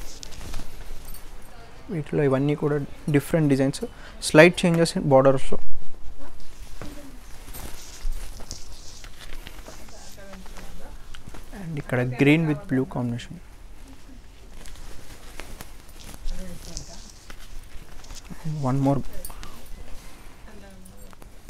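Silk fabric rustles as it is unfolded and spread out.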